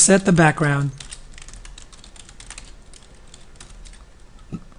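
Keys click quickly on a computer keyboard.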